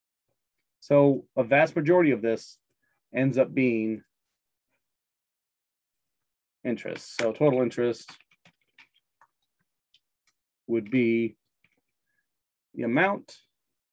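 A man speaks calmly through a microphone, with short pauses.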